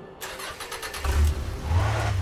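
A car engine revs as the car drives off.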